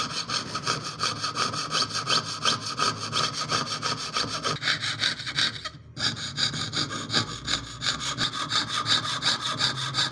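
A fine saw blade rasps rapidly back and forth through thin metal.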